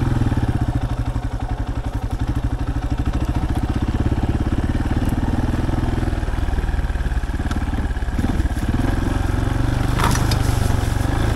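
A motorcycle engine chugs and revs steadily close by.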